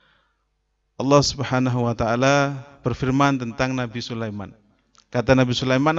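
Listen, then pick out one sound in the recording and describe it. A man recites in a drawn-out, melodic voice through a microphone.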